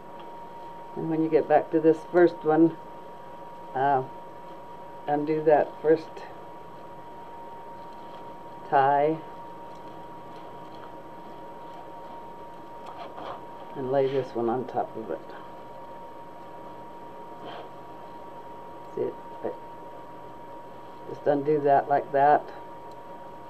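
A woman talks calmly in short bursts close to the microphone.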